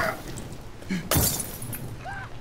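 A heavy blow lands with a thud.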